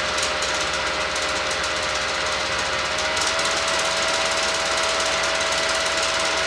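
An electric fan whirs steadily with a humming tone that rises slightly partway through.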